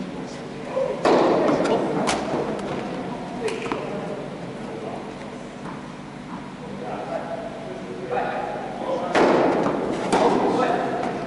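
Tennis balls are struck with rackets, echoing in a large indoor hall.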